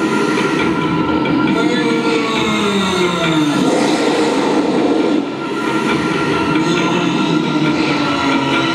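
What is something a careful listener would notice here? A large audience murmurs in an arena.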